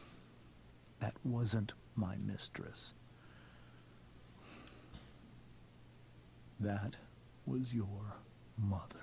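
A man speaks calmly in a low voice.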